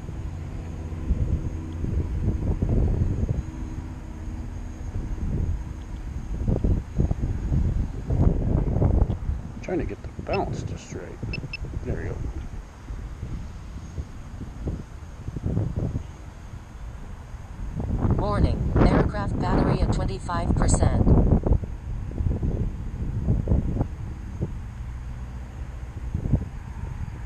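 Wind gusts rumble and buffet outdoors.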